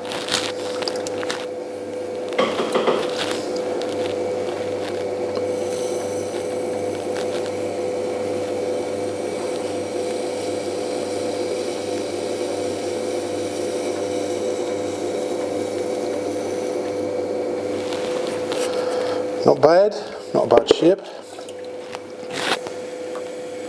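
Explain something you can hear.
An electric pottery wheel motor hums.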